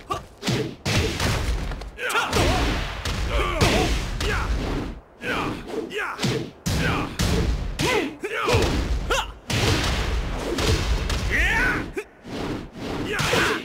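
Punches and kicks land with heavy, crackling thuds.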